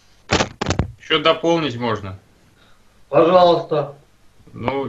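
A man speaks calmly, close to a microphone.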